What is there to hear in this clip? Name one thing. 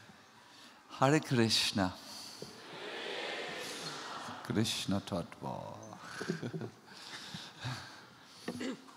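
A man laughs into a microphone.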